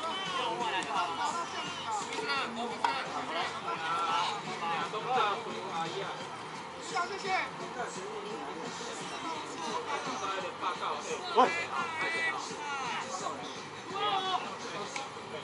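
Several young men call out and talk across an open outdoor field.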